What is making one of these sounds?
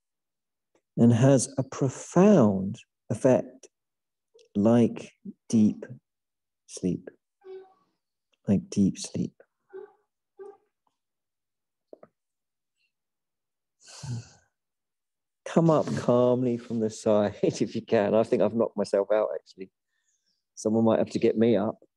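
A man speaks calmly and slowly, heard through an online call.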